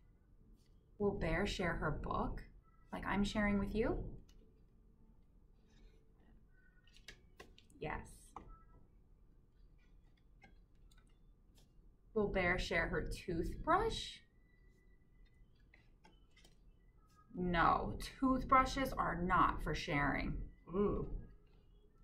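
A young woman reads aloud close by, speaking expressively with pauses.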